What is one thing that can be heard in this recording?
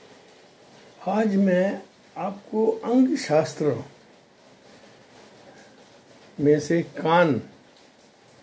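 An elderly man speaks calmly and close, with pauses.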